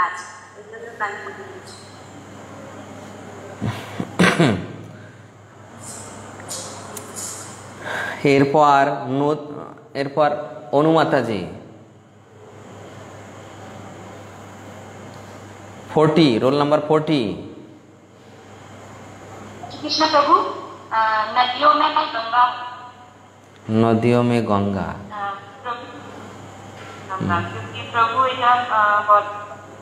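A middle-aged man sings in drawn-out phrases with pauses, close to a microphone.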